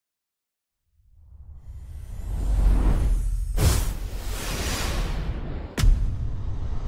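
Fireworks whoosh and crackle.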